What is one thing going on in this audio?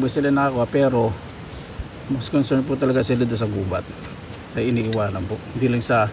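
A soft brush scrubs dirt off a mushroom stem.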